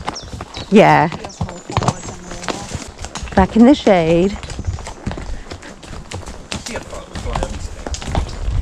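Horse hooves thud and clop on a dirt path.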